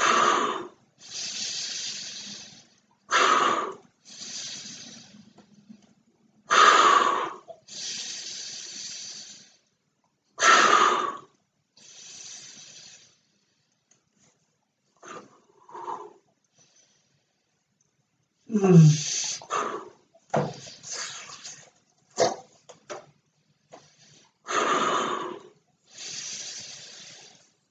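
A man inhales deeply between breaths.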